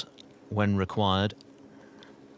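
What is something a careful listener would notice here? A man calls out briefly and clearly.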